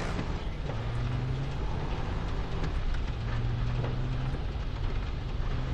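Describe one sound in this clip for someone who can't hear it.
Tyres crunch and bump over sand and rocks.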